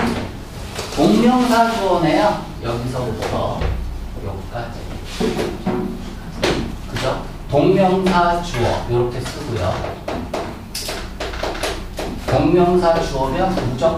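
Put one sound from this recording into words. A man speaks calmly and clearly, nearby.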